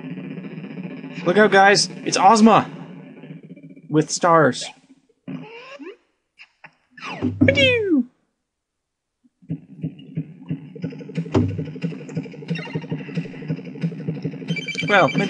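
Chiptune game music plays.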